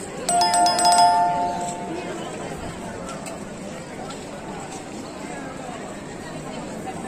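A crowd of people chatters in a busy murmur outdoors.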